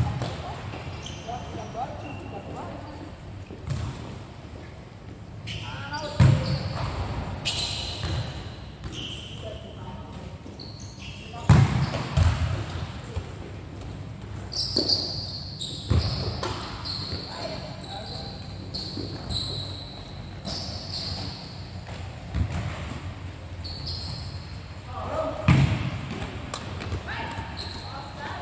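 Shoes squeak sharply on the court.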